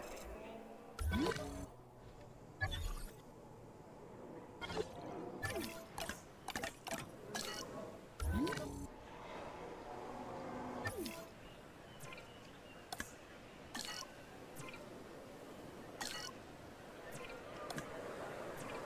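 Soft interface clicks and whooshes sound now and then as menus open and close.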